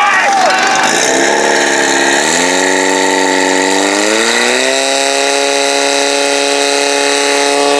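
A pump engine roars and revs up steadily.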